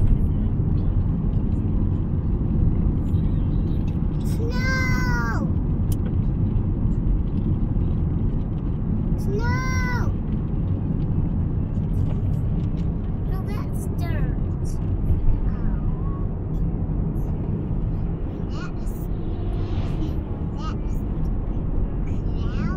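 A car engine hums and road noise rumbles steadily from inside a moving car.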